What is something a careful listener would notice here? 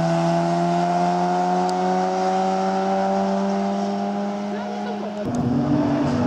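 A small car engine hums as the car drives away along a road.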